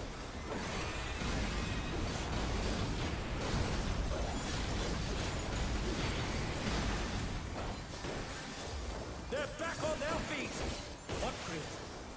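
Magic blasts crackle and boom in a fierce battle.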